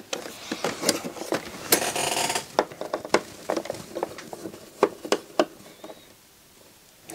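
Small metal parts click and tap as a screwdriver works on a device.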